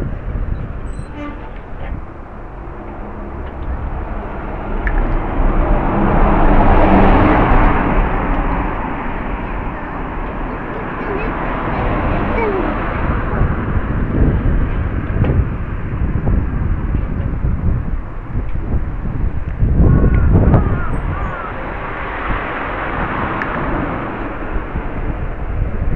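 Wind buffets the microphone while riding.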